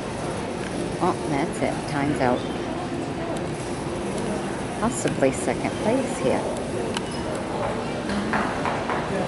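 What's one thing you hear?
Men and women talk nearby.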